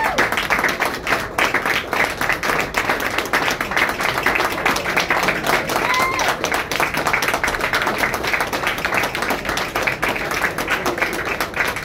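A crowd claps and applauds loudly.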